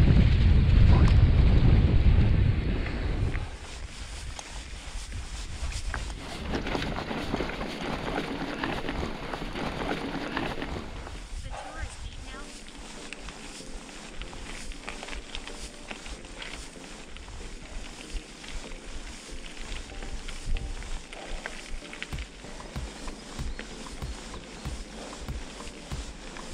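Bicycle tyres crunch and rattle over grass and gravel.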